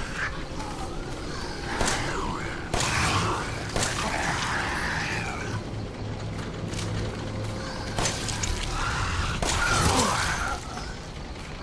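A monster snarls and growls close by.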